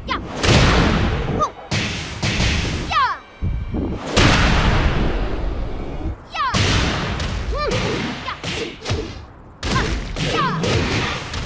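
Heavy blows land with loud, crashing impacts.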